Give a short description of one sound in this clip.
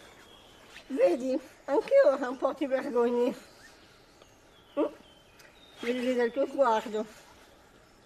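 An elderly woman talks calmly nearby.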